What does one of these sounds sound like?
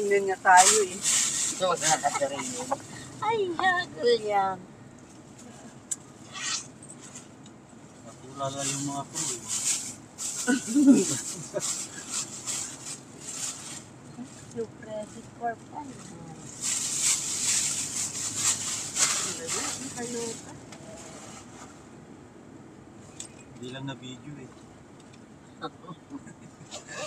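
Women talk and laugh close by.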